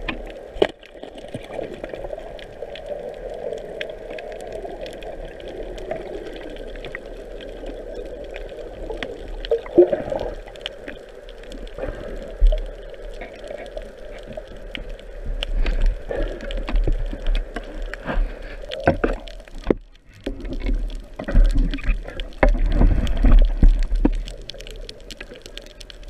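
Underwater, a diver's breathing gear hisses and bubbles steadily.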